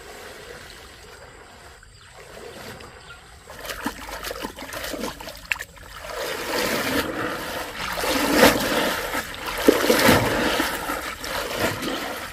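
A wicker basket splashes and swishes through shallow water.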